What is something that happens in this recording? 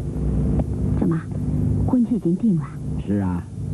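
An elderly woman asks something in a surprised voice.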